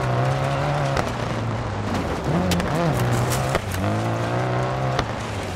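A rally car engine revs hard, with sharp gear shifts.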